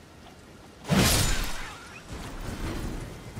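A heavy blow strikes an animal with a loud thud.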